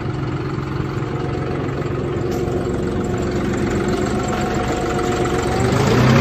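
A tractor engine idles nearby with a steady rumble, revving up slightly at the end.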